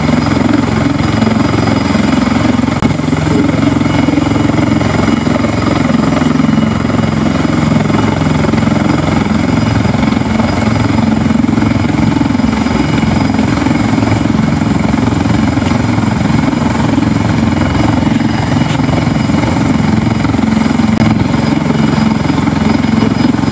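A turbine helicopter runs on the ground with a steady whining roar.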